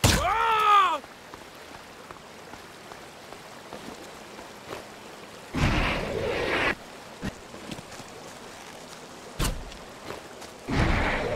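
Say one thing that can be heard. Water rushes and gurgles steadily nearby.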